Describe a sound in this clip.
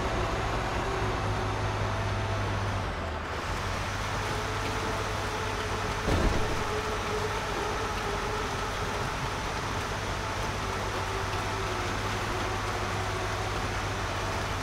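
Tyres crunch over a bumpy dirt track.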